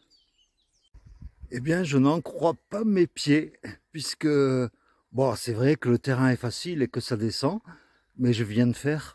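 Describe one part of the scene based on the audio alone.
An elderly man talks calmly, close to the microphone.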